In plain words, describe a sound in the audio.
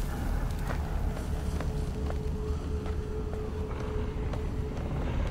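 Footsteps knock slowly on wooden boards.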